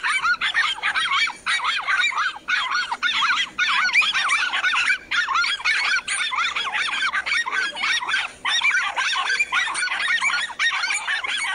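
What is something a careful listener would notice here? Dogs bark sharply and excitedly close by.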